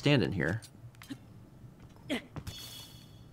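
A young man exclaims briefly into a microphone.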